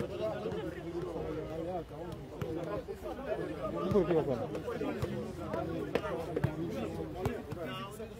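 A football is kicked with dull thuds outdoors.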